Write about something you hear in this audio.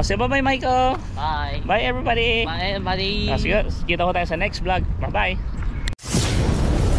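A man talks with animation close to a microphone outdoors.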